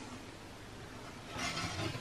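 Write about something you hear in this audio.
A thin metal plate scrapes against a wooden bench.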